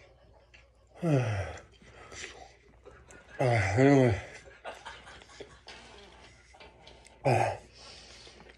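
A man wails and cries loudly close by, in bursts.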